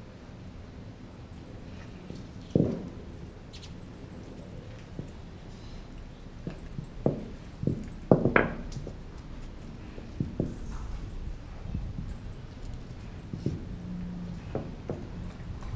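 A dog gnaws and knocks a bone against hard ground.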